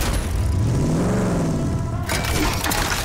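A vehicle engine revs and roars.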